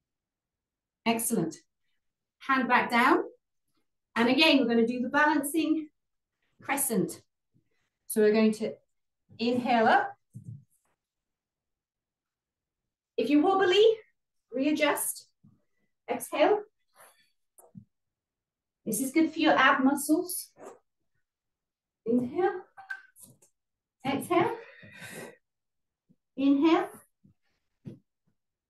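A woman speaks calmly and clearly into a close microphone, giving instructions in short phrases with pauses.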